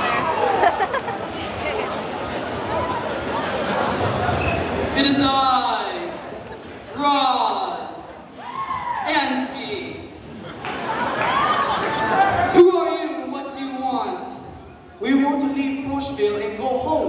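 A crowd cheers and screams in a large echoing hall.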